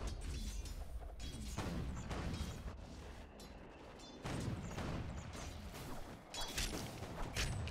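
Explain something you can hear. Weapons clash and strike in a busy fight.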